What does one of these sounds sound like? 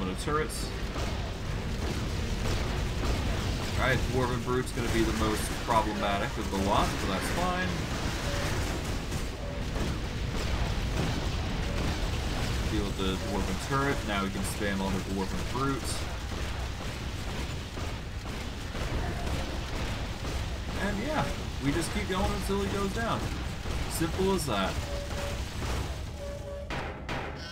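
Magic blasts crackle and boom in a fast battle.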